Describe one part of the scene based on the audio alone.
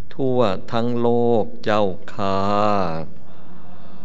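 An elderly man chants slowly into a microphone.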